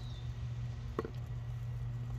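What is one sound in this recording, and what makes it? A hand trowel scrapes into loose soil.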